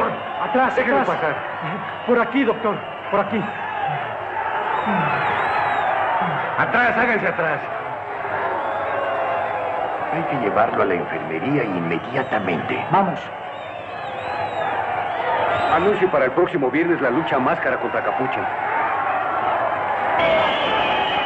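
A crowd of men shouts and clamours close by.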